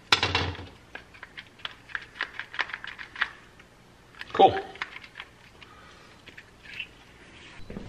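Small plastic parts click and rattle as hands handle them.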